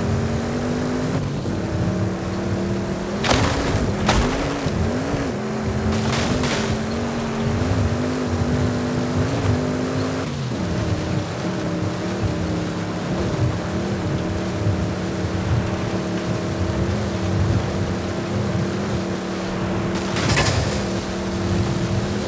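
A car engine roars steadily at high revs, shifting gear as the car speeds up.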